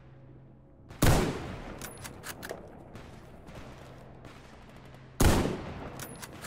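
A rifle fires a loud shot that echoes and rolls away outdoors.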